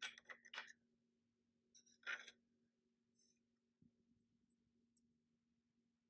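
A small ceramic figurine clicks against a wooden shelf.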